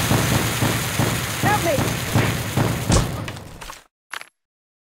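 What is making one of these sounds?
Bombs explode with loud, rumbling booms.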